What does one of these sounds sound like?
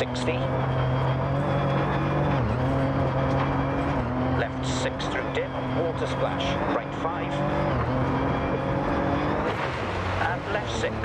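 Gravel crackles and sprays under the car's tyres.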